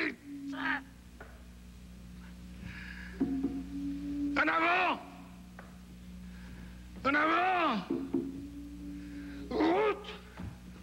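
A man sings out in short, wavering bursts.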